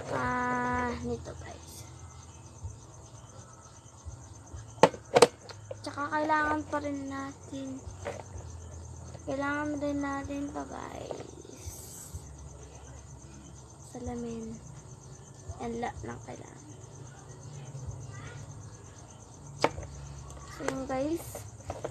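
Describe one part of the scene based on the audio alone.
A young girl talks close to the microphone in a high, lively voice.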